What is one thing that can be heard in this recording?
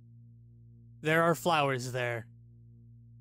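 A man speaks briefly in a playful, exaggerated character voice, close to a microphone.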